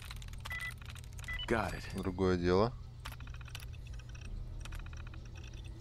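A computer terminal clicks and beeps.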